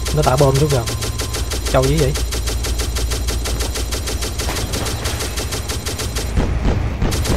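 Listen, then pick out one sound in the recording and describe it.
A machine gun fires in rapid, steady bursts.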